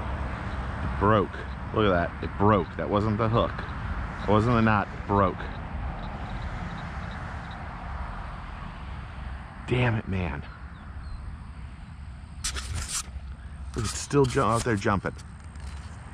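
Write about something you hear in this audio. A man talks casually, close by.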